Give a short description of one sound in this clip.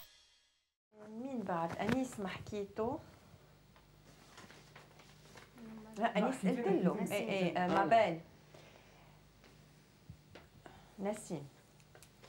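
A young woman sings close by.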